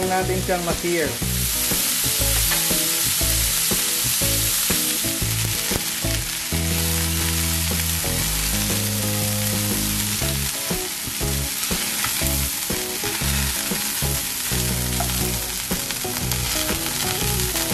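Metal tongs clink against a frying pan.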